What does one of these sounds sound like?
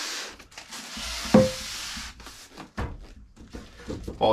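Packing tape screeches off a tape dispenser.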